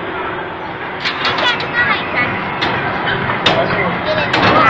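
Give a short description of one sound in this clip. A young girl speaks close by.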